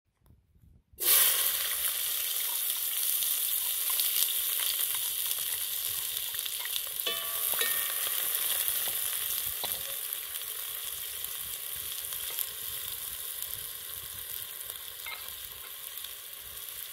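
Onions sizzle in hot oil.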